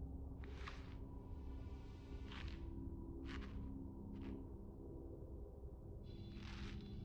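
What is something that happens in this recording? Soft electronic swishes sound as a menu selection moves from item to item.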